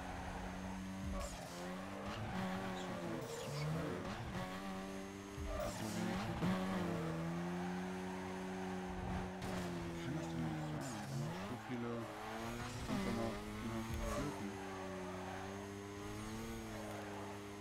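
A sports car engine revs up and down while drifting.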